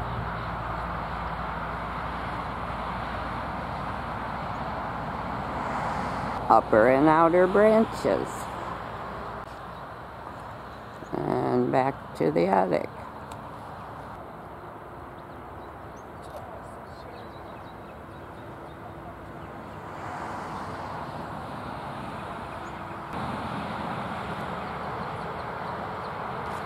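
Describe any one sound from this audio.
Wind blows through pine branches outdoors.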